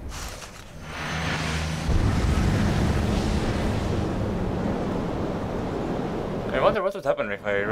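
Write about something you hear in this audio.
A magical roar swells into a deep, rushing whoosh.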